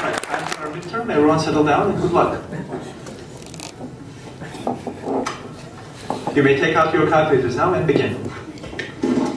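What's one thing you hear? A young man speaks to a room in a slightly echoing hall.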